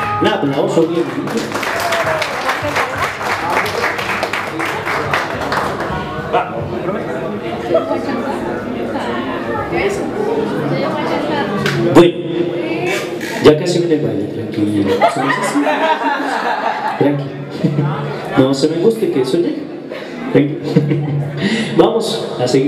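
Guests murmur and chatter in the background of a room.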